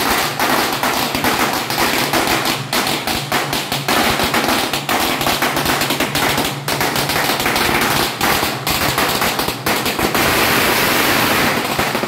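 Firecrackers crackle and pop rapidly nearby.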